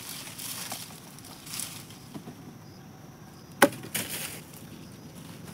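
Dry leaves and twigs rustle and crunch underfoot.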